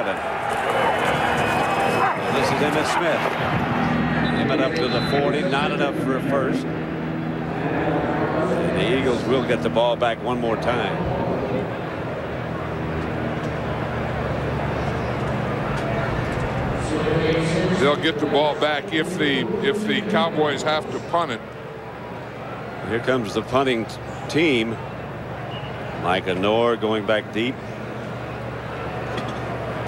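A large stadium crowd roars and murmurs outdoors.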